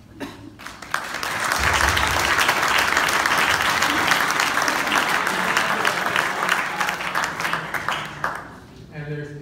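A crowd applauds loudly and cheers.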